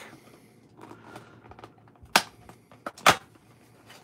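A foil pack crinkles.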